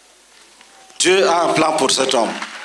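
A man speaks loudly and with animation through a microphone and loudspeakers.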